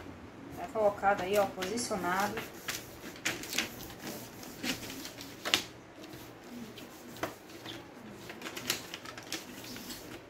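Hands rustle and press against a thin plastic sheet.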